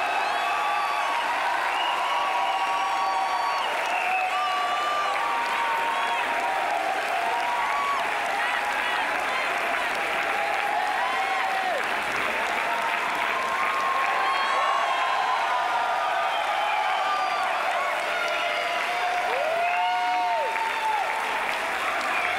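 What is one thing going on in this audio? A crowd claps and cheers loudly in a large hall.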